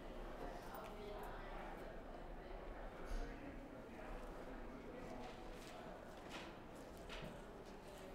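Fabric rustles as clothes are pulled from a suitcase.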